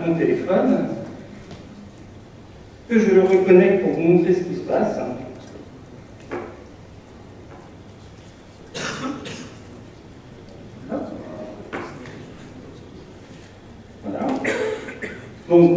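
A man speaks in bursts through a microphone in a large room.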